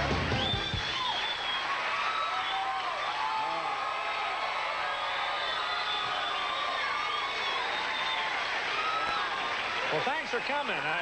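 A large studio audience cheers and applauds loudly.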